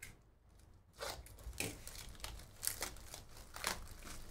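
A cardboard box is torn open.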